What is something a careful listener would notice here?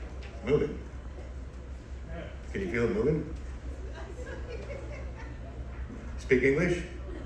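A man speaks through a microphone over loudspeakers in a large echoing hall.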